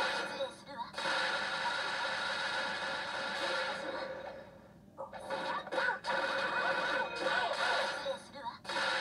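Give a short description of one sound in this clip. Loud energy blasts whoosh and crackle.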